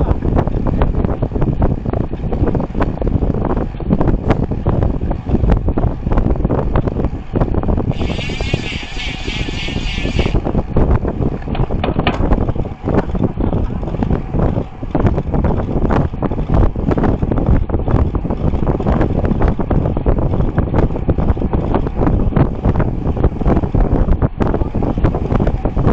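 Wind rushes and buffets loudly against a moving bicycle.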